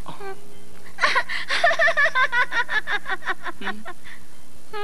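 A young woman laughs loudly in bursts.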